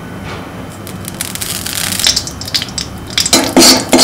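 A metal ladle scrapes in a pan.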